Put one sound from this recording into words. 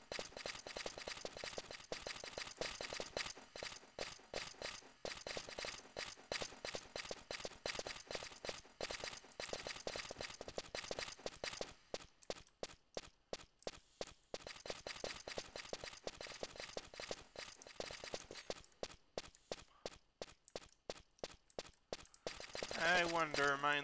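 Quick footsteps crunch steadily over rough ground.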